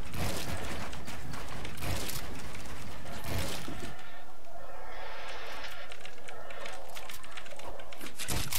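Keys on a mechanical keyboard clack rapidly.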